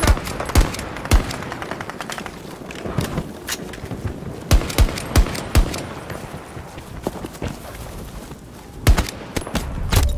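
Rifle shots fire in quick bursts, close by.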